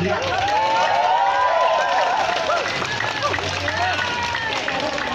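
A crowd of young people cheers and shouts excitedly outdoors.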